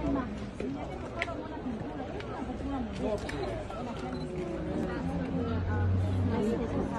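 Many men and women chatter at once in a crowd.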